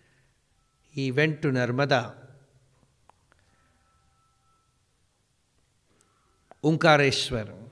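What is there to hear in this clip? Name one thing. A man speaks with animation into a microphone, with pauses.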